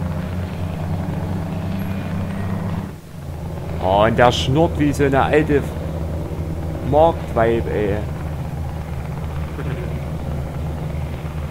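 A truck engine hums steadily at low pitch.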